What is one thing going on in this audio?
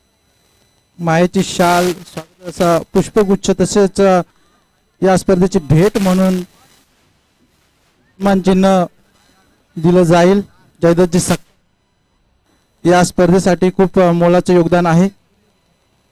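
A man announces loudly and with animation through a loudspeaker.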